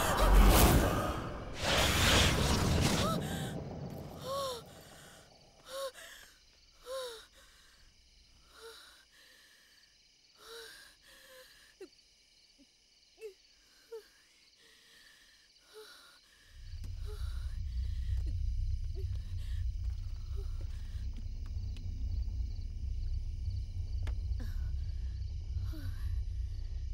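A young woman gasps and breathes heavily close by.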